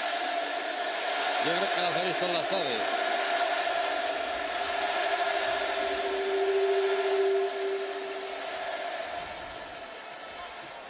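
A large stadium crowd roars and cheers steadily.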